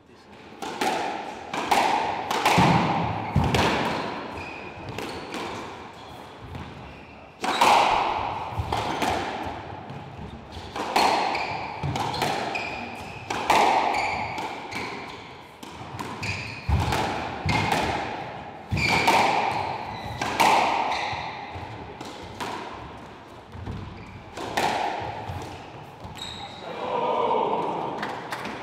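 A squash ball smacks sharply off rackets and walls, echoing in a hard-walled court.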